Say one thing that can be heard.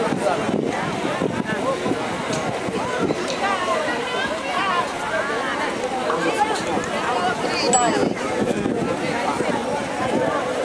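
A crowd of men and women chatter loudly outdoors.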